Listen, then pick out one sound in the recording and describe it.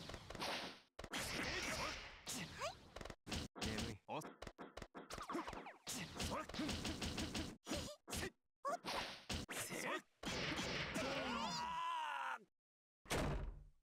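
Sword slashes whoosh and blows land with sharp thuds.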